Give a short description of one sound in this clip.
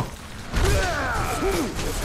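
An explosion bursts with a loud boom.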